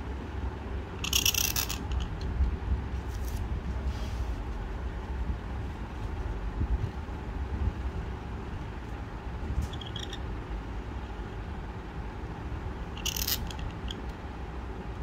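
A reed pen scratches across paper in short strokes.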